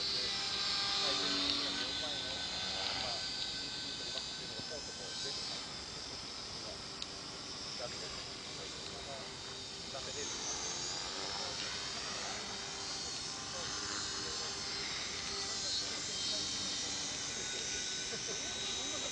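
A small model helicopter whines overhead, its motor pitch rising and falling as it flies about.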